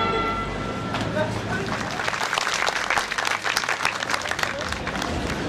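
A crowd claps and applauds loudly in a large hall.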